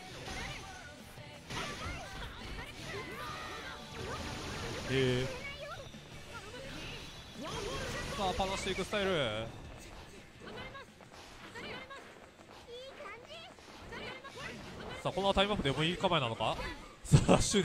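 Fighting game blows land with sharp hits and whooshes.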